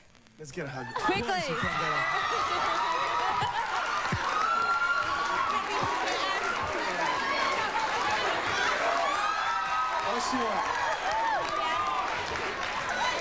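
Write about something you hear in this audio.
A studio audience cheers and screams loudly.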